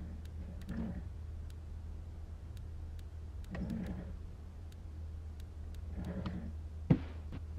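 A slide projector clicks and whirs as slides change.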